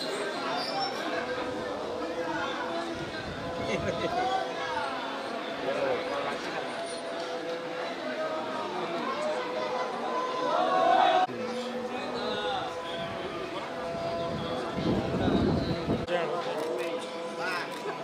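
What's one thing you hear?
A crowd of men and women chatters and calls out.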